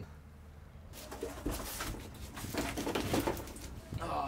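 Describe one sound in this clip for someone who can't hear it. Foil-faced boards crinkle and creak under a person's weight close by.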